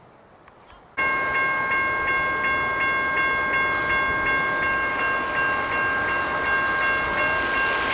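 A freight train rumbles along the tracks.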